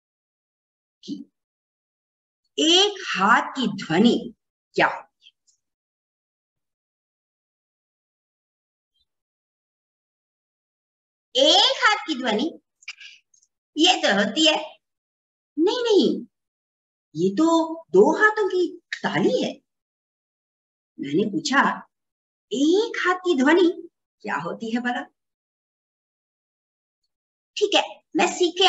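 A young woman speaks with animation over an online call, with long pauses.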